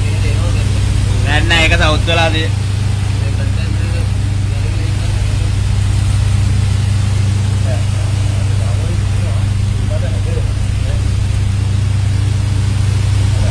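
Sea waves slosh against a ship's hull.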